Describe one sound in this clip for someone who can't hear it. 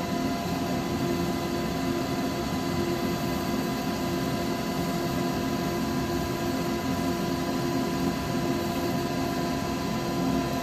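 Sandpaper rubs against a spinning piece on a lathe.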